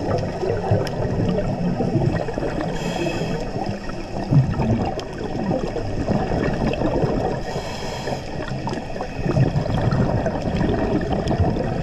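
Air bubbles gurgle and rush upward underwater.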